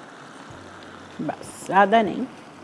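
Water pours into a hot pan and sizzles.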